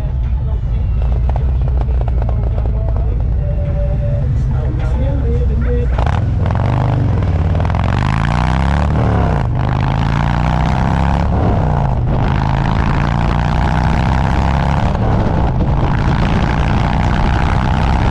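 A motorcycle engine rumbles steadily up close, rising and falling as it speeds up.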